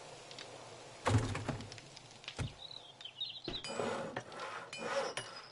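Short clicks and thuds sound as a game menu opens and closes.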